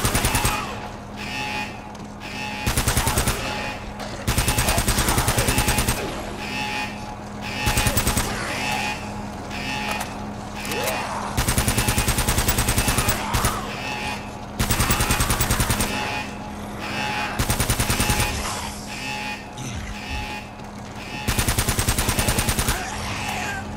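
A submachine gun fires in loud, rapid bursts.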